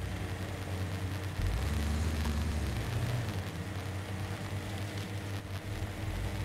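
Tyres crunch over rocky ground.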